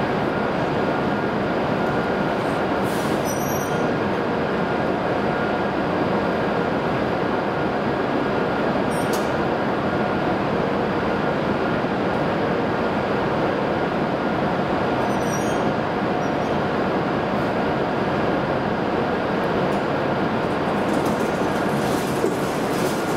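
Parked high-speed trains hum steadily.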